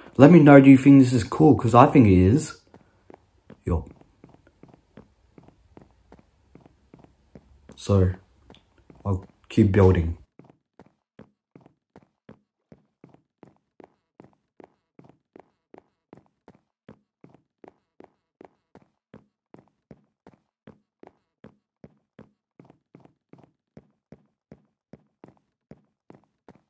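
Footsteps tap steadily on wooden boards.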